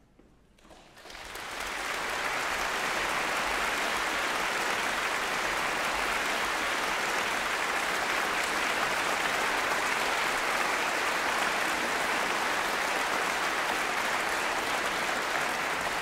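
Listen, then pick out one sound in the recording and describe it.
A large audience applauds loudly in an echoing hall.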